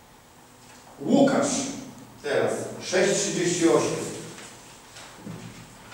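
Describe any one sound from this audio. A man speaks loudly and expressively in a room with some echo.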